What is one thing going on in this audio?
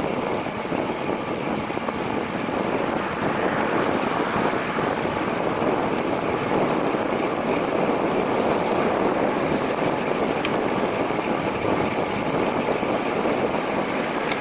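Wind rushes loudly and steadily past.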